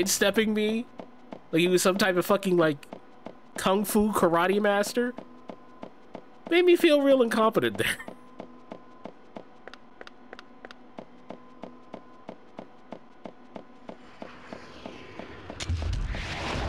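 Footsteps run quickly and evenly on a hard floor.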